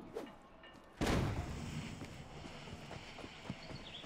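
A smoke bomb bursts with a loud hiss.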